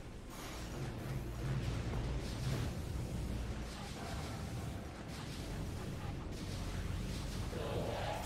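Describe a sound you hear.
A metal ball rolls and rumbles over a metal grating.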